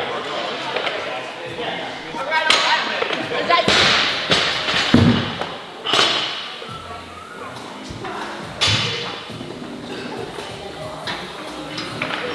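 Weight plates clank on a barbell.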